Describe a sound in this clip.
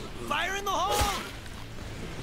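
A small explosion bursts with a sharp bang.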